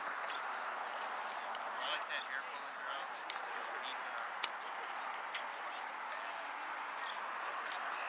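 A man talks quietly nearby outdoors.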